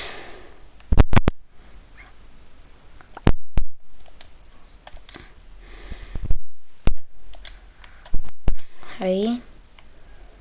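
Game menu clicks tick sharply now and then.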